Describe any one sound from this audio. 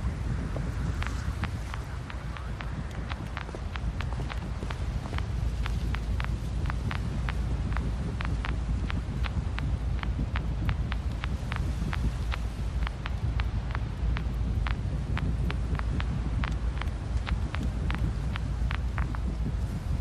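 Footsteps tap steadily on a hard floor nearby.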